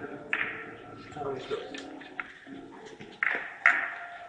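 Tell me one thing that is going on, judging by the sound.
A cue strikes a billiard ball.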